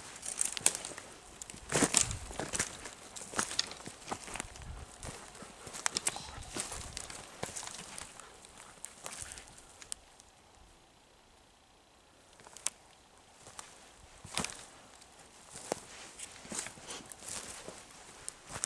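A dog's paws patter and rustle through leaf litter.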